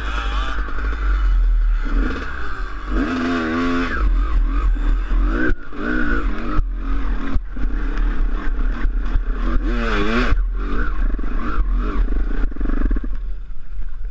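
A dirt bike engine revs hard up a hill, close by.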